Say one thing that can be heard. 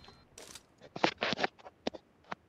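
A rifle fires a single shot.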